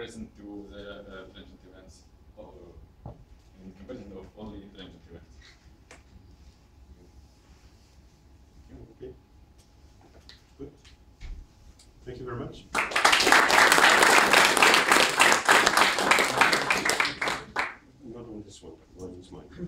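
A young man speaks calmly to an audience in a room.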